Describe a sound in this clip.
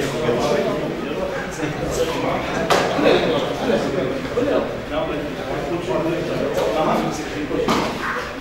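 Several men talk and murmur nearby in a room.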